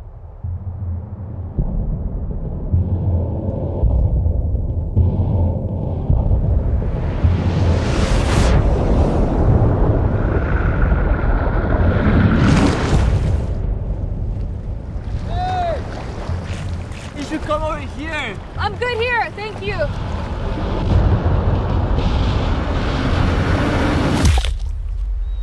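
Waves crash and churn loudly.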